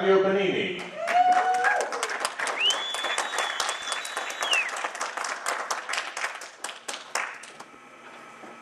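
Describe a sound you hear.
An audience claps and applauds in a large room.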